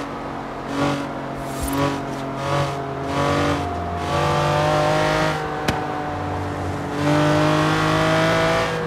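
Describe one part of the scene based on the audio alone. A sports car engine revs hard and drops as the gears shift up.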